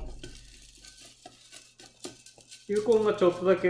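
Gravel rattles as it is poured from a metal scoop into a pot.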